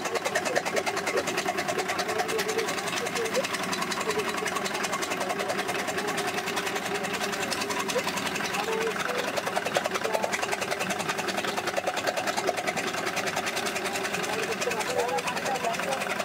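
A motor-driven threshing machine whirs and rattles steadily.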